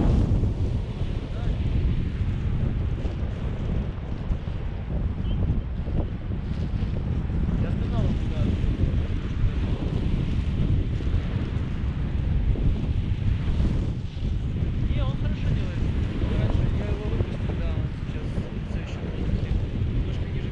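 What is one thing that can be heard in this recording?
Strong wind roars and buffets against a microphone outdoors.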